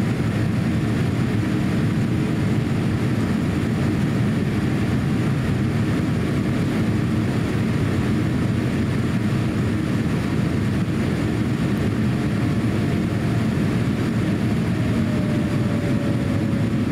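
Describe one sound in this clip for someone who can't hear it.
An aircraft's engines roar steadily inside the cabin.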